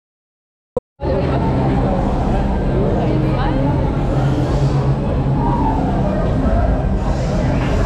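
A crowd of people murmur and talk nearby.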